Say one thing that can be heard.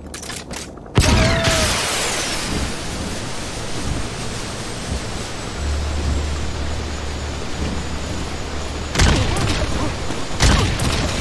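A rocket launcher fires with loud booming blasts.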